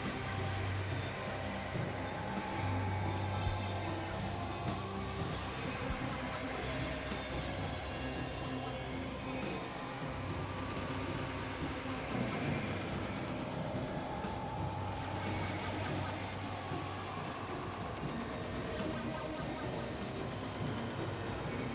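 A synthesizer plays a steady, droning electronic tune.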